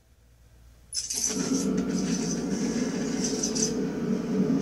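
Loud game music and sound effects play from a television speaker.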